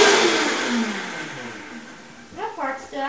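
A blender motor whirs and winds down.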